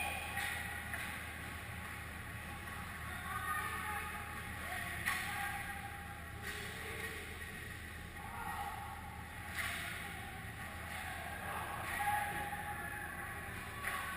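Skates scrape and swish across the ice in a large echoing hall.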